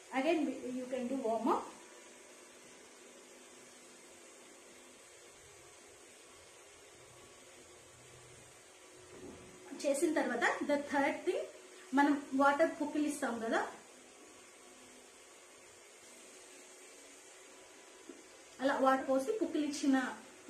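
A young woman speaks calmly and clearly close by.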